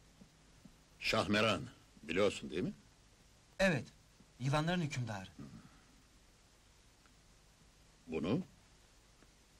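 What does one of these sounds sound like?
An older man speaks nearby in short, firm phrases.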